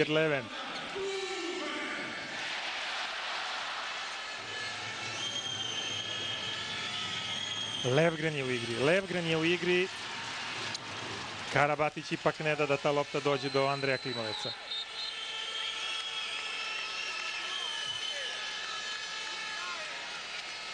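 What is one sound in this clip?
A large crowd cheers and chants in an echoing hall.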